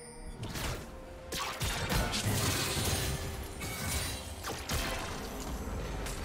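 Magic blasts and sword strikes crackle and burst in a video game fight.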